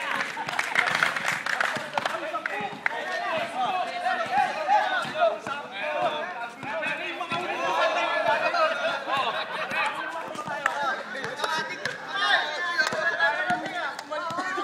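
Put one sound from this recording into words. Several young men talk and shout over each other outdoors.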